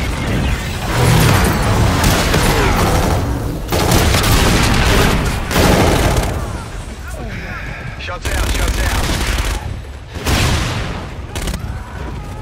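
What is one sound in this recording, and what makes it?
Gunfire crackles in rapid, loud bursts.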